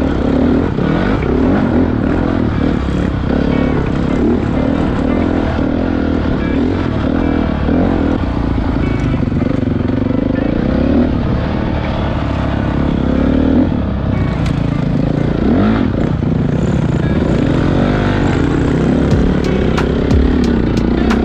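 A dirt bike engine revs and roars loudly up close, rising and falling in pitch.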